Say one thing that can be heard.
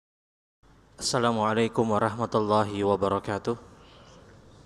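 A man chants in a melodic voice into a microphone.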